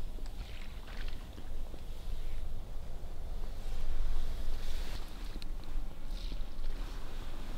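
Dry reeds rustle in the wind.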